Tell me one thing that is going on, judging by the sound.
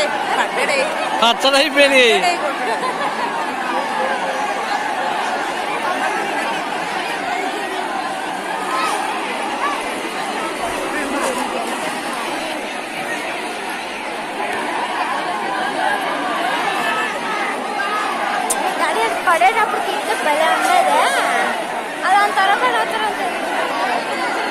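Men and women shout excitedly in bursts nearby.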